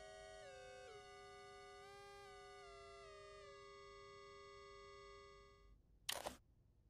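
Layered electronic tones hum steadily and shift in pitch.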